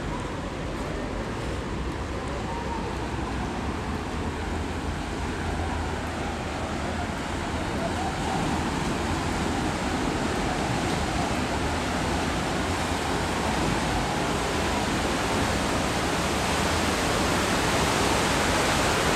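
Water splashes and churns against a moving boat.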